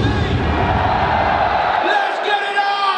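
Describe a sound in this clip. Stage flames burst with a roaring whoosh.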